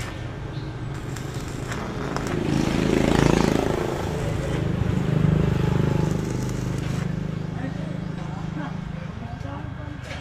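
An electric welder crackles and sizzles close by.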